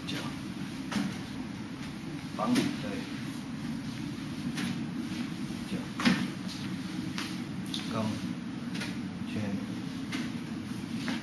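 Arms and legs knock hard against a wooden training dummy in quick, uneven strikes.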